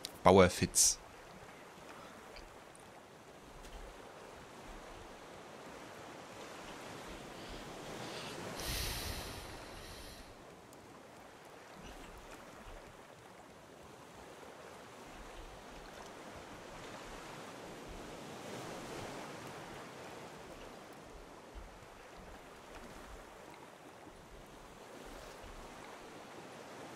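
Sea waves wash gently in the distance.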